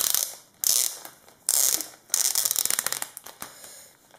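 A plastic sleeve crinkles and rustles as paper slides into it.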